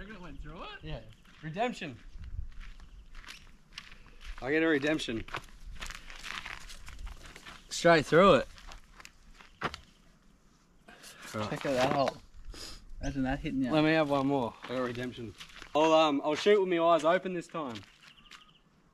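Young men talk and laugh loudly close by, outdoors.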